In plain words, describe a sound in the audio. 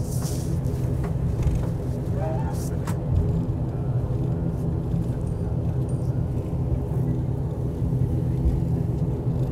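A jet engine rumbles and hums steadily.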